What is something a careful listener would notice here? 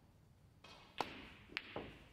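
A snooker cue strikes a ball with a sharp click.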